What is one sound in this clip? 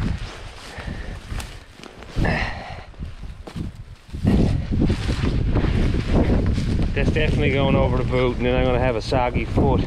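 Leafy shrub branches rustle and brush close by.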